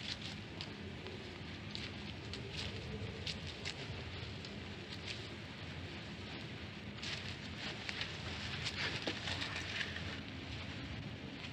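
Footsteps crunch softly over grass and dry leaves.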